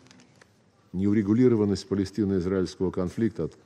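A man speaks steadily into a microphone in a large hall.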